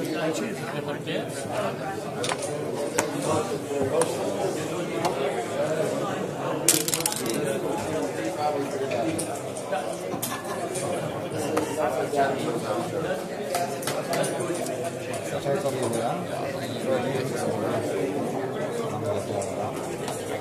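Plastic game pieces click onto a board.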